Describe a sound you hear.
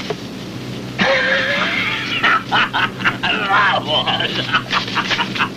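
An elderly man speaks loudly with animation.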